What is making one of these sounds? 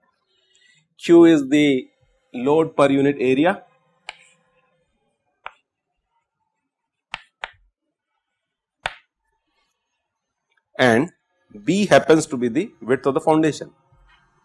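An adult man lectures calmly into a microphone.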